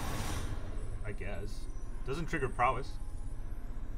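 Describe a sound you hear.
A young man speaks casually into a close microphone.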